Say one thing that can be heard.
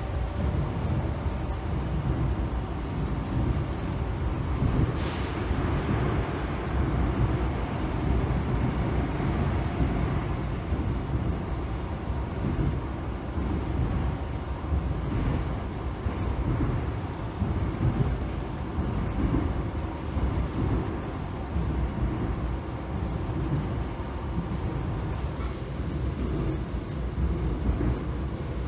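A subway train rumbles steadily along the tracks.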